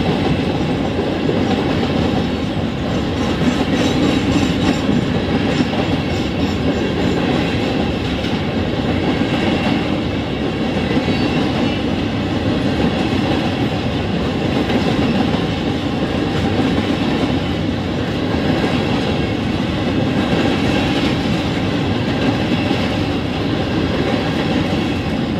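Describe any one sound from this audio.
A freight train rumbles and clatters steadily past at close range.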